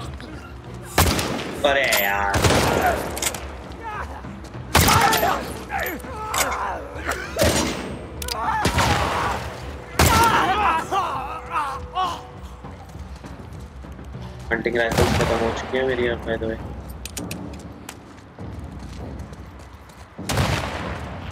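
Gunshots crack and echo loudly.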